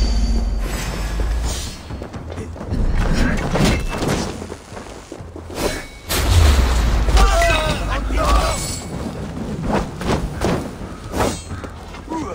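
Weapons clash and strike with sharp metallic hits.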